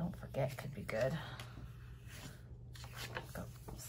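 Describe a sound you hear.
Stickers peel off a backing sheet with a soft crackle.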